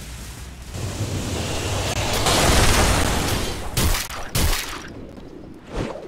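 Weapons clash and spells burst in a game fight.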